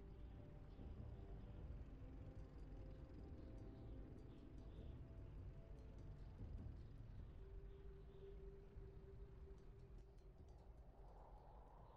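Heavy tank engines rumble and clank across the ground.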